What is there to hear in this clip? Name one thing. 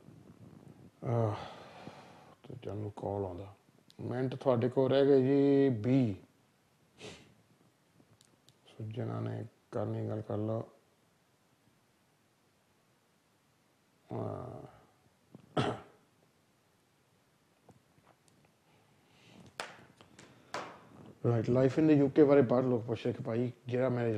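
A man speaks into a microphone, calmly and close up, with pauses.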